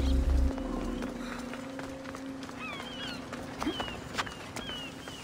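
Footsteps scuff and tap on rock.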